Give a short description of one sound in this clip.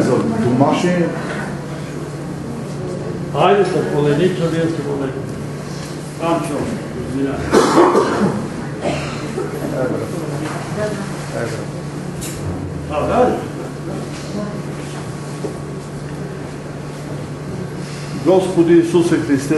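Several men and women chat in low voices nearby in a room with some echo.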